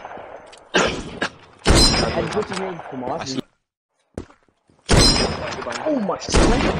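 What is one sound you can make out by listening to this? A rifle fires loud, sharp shots now and then.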